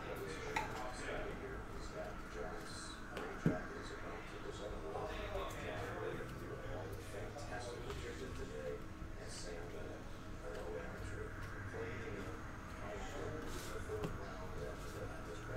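Cards tap down on a table.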